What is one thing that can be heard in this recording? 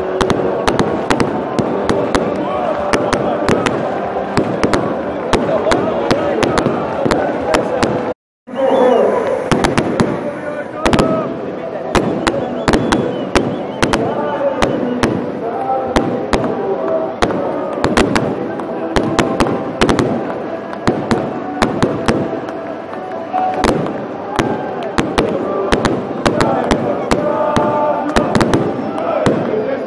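A large crowd cheers and sings loudly outdoors.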